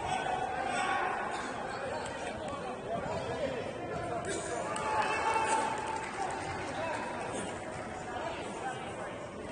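Players call out to each other across an echoing hall.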